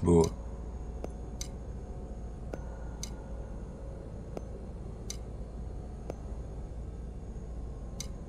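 Soft clicks sound now and then as items are moved.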